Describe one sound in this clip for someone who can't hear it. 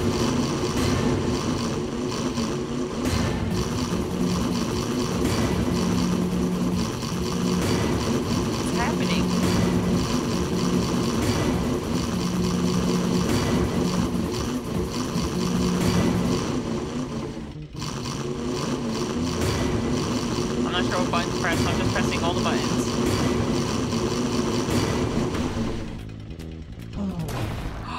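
A bulldozer engine rumbles steadily.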